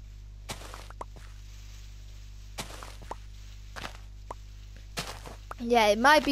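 Blocks of dirt crunch softly as they are dug out, one after another.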